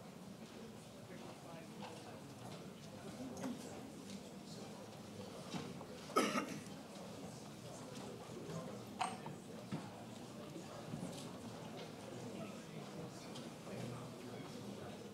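A man speaks steadily through a microphone in a large hall.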